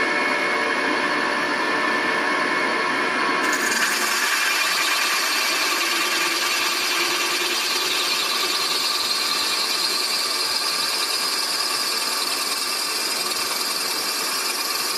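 A milling machine's cutter grinds steadily into metal with a high, whining screech.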